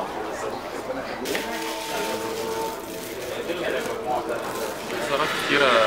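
Men and women talk quietly nearby.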